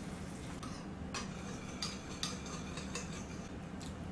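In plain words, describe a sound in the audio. A spoon clinks against a small bowl.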